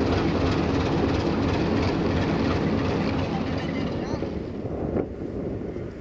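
An electric locomotive rumbles past close by.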